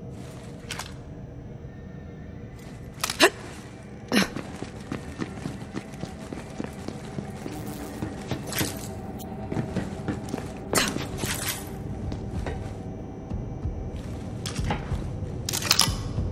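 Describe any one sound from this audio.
Footsteps thud steadily as someone walks.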